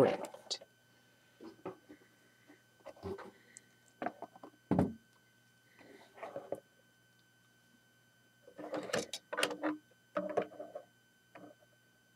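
Small plastic pieces click and clatter as they are handled.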